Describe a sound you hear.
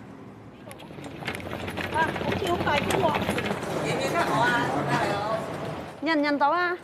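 Wheelchair wheels rattle over paving.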